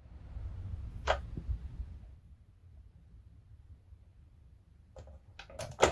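Plastic clicks sharply as a toy alarm clock's button is pressed.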